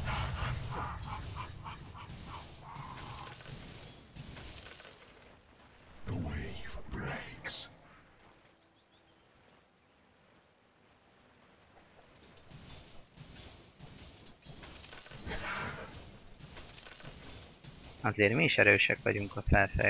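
Game battle effects clash and crackle as spells hit.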